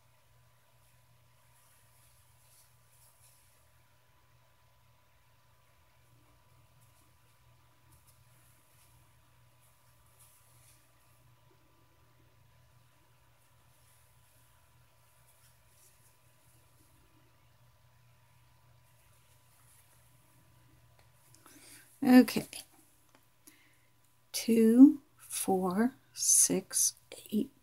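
A crochet hook softly rubs and clicks through yarn.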